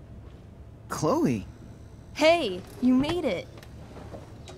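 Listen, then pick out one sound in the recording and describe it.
A young woman calls out a cheerful greeting.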